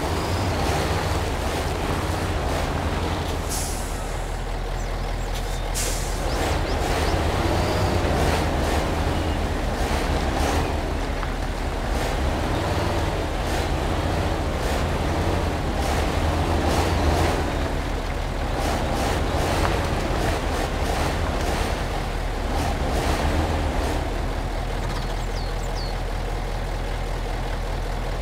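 A heavy truck engine rumbles and labours steadily.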